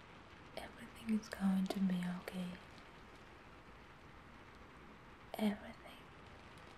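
A young woman murmurs softly close by.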